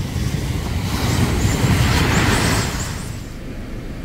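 Waves crash and wash up onto a beach.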